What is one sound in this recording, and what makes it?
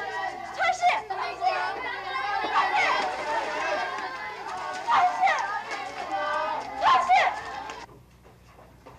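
A crowd of people shout and clamour in the open.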